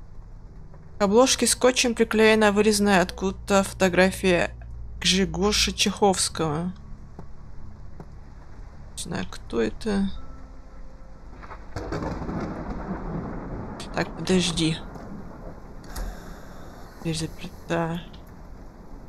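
A young person talks calmly into a microphone, close by.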